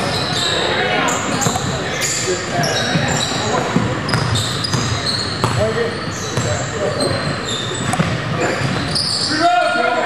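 Sneakers squeak sharply on a hard floor, over and over.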